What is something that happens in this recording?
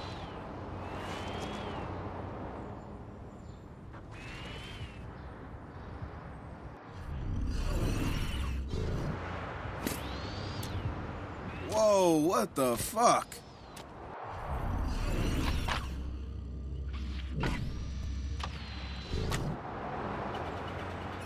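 A small remote-controlled car's electric motor whirs as it rolls along.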